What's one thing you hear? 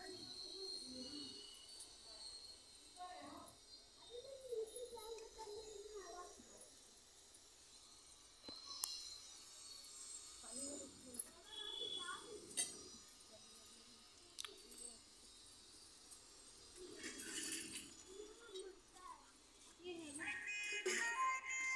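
Metal dishes clink and clatter.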